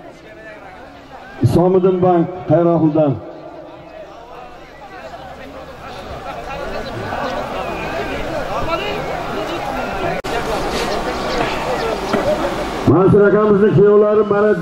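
A crowd of men shouts and chatters outdoors.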